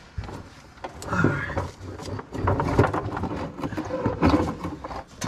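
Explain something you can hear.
A gloved hand rattles and clicks a plastic connector.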